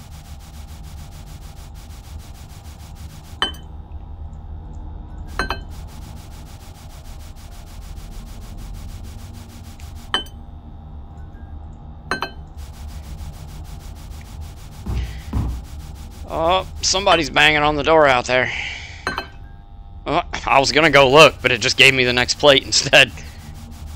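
A sponge scrubs wetly against a plate.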